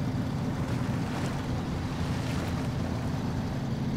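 Truck tyres splash through water.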